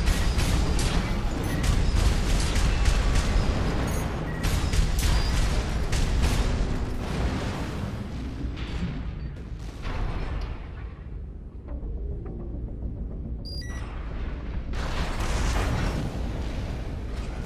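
A heavy machine's engine roars and thrusts.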